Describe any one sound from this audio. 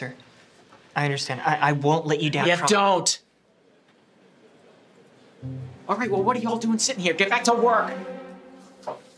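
An older man speaks loudly and angrily.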